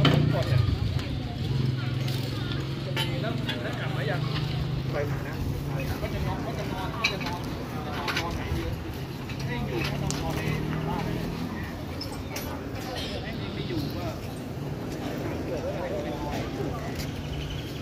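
A frame of light metal tubes clanks and scrapes on pavement as it is put together.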